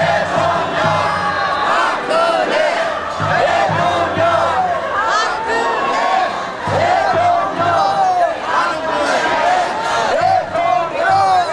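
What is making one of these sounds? A large crowd of marching men and women chants and shouts loudly outdoors.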